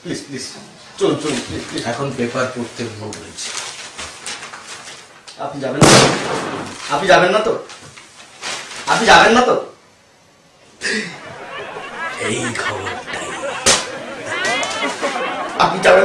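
A second man talks and laughs close by.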